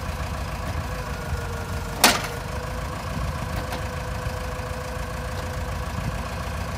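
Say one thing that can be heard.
A heavy diesel engine idles with a steady low rumble.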